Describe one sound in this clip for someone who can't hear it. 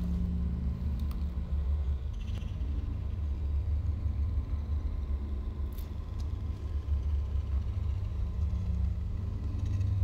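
A low machine hum drones steadily throughout.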